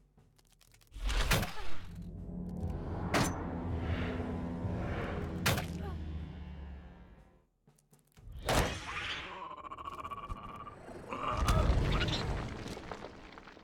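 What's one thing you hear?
Sharp magical blasts and impacts boom in a fight.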